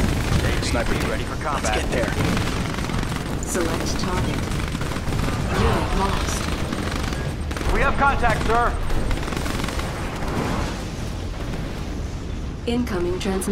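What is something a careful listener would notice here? Explosions boom in rapid succession.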